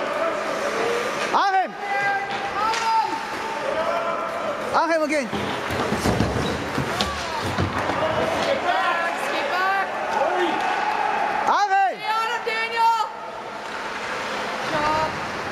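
Spectators chatter and call out in a large echoing rink.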